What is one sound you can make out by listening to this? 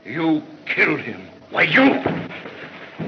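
A man speaks tensely through an old film soundtrack.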